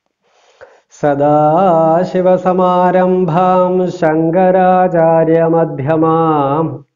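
A man chants in a steady, drawn-out voice close to a microphone.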